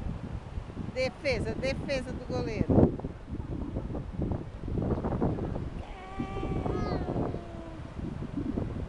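A young boy shouts and laughs nearby.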